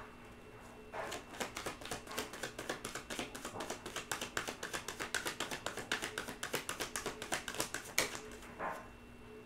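Cards riffle and snap as a woman shuffles a deck.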